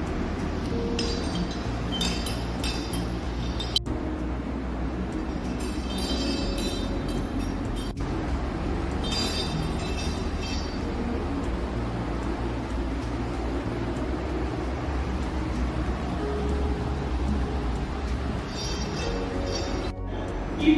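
A small bell jingles in quick bursts as it rolls across a hard floor.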